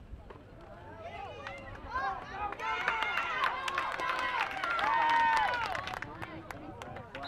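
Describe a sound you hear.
A crowd cheers and yells loudly.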